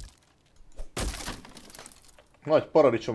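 Wood splits apart with a crack.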